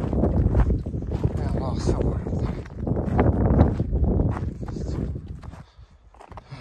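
Footsteps crunch on dry, stony ground.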